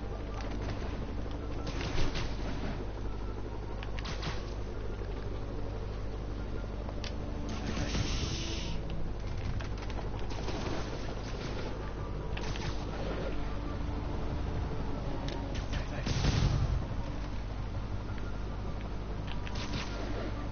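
Rushing air whooshes past as a figure swings between rooftops.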